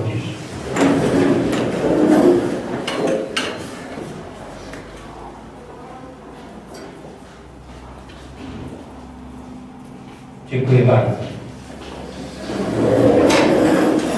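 Chairs scrape as people stand up and sit down.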